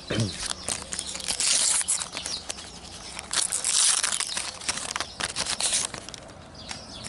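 Plastic wrappers crinkle and rustle close by.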